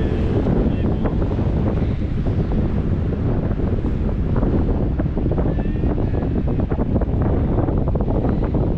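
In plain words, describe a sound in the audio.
Strong wind buffets and roars against the microphone.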